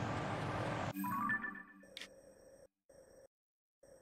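Short soft clicks and chimes sound in a quiet moment.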